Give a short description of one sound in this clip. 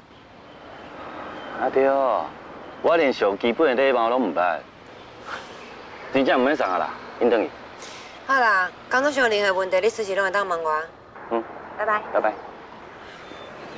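A young man speaks cheerfully nearby.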